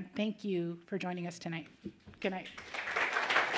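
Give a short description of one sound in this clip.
A middle-aged woman speaks warmly into a microphone.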